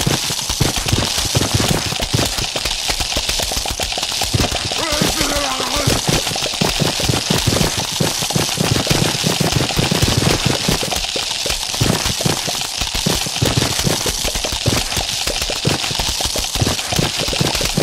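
Rapid thuds and pops of game attacks hitting targets repeat throughout.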